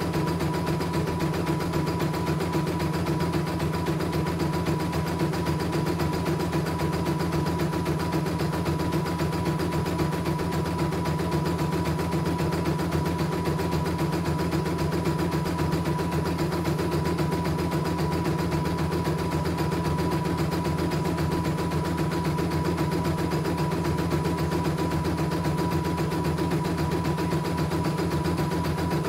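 An embroidery machine stitches with a fast, steady rattling hum.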